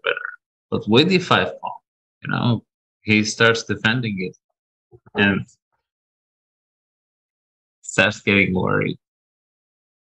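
A man speaks calmly and with animation into a close microphone, heard through an online call.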